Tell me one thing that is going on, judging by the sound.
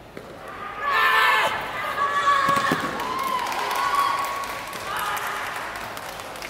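Young men shout sharp battle cries in a large echoing hall.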